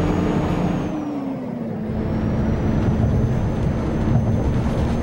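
A bus engine hums low, dropping in pitch and then holding steady.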